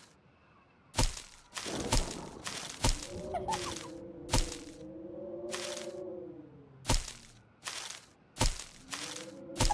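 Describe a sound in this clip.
Short thumps and pops sound from a mobile game.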